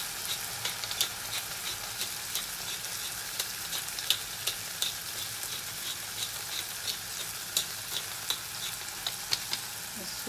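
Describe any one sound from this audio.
Mushrooms and onions sizzle in a frying pan.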